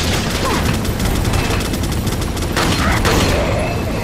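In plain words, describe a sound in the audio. A pistol fires a few sharp shots.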